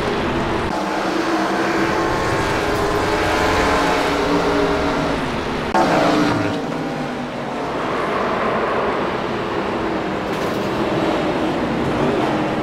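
Racing car engines roar loudly at high revs.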